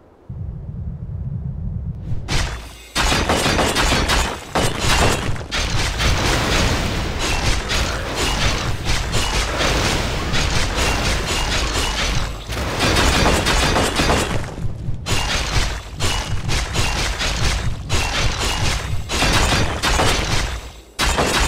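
Magic spell effects crackle and hum in a game battle.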